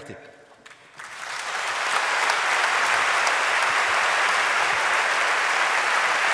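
A large audience applauds loudly in a large hall.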